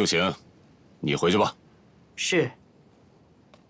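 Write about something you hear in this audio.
A young man answers briefly.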